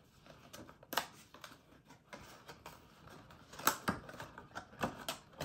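Cardboard packaging rustles and tears as a box is opened.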